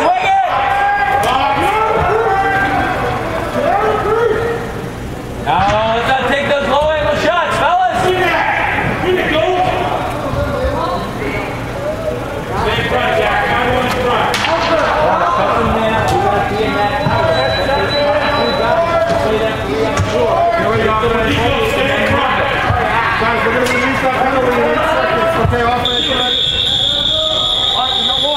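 Young players shout to each other in a large echoing indoor hall.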